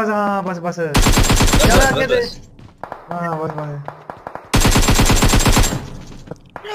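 Rapid gunfire rattles from an assault rifle.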